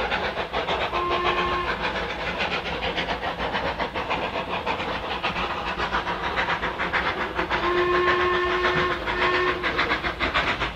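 A steam locomotive whistle blows in short toots.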